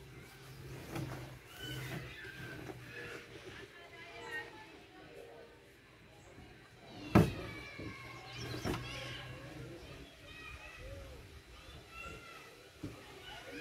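Objects thud and clatter against a metal truck bed.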